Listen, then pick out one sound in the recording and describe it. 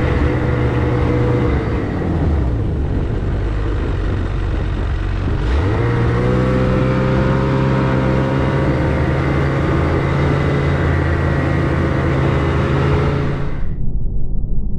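A snowmobile engine drones as the snowmobile travels over snow.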